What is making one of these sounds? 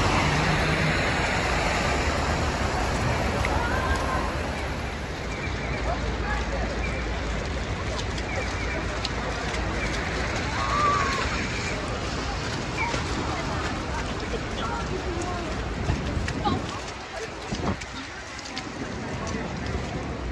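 City traffic rumbles along a street.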